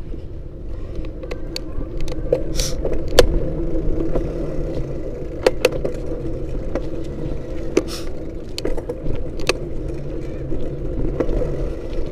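A vehicle's engine rumbles low and steady while driving.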